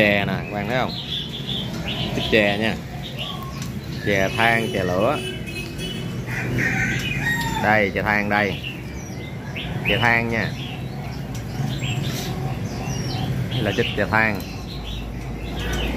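Small caged birds chirp and twitter.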